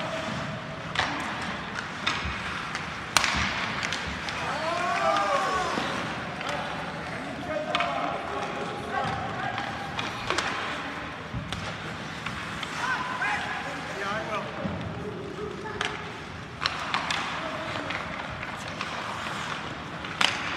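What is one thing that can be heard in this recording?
Hockey sticks clack against the puck and each other.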